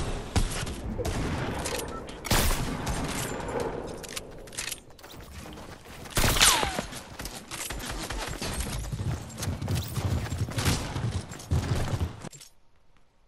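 Gunshots crack sharply in quick bursts.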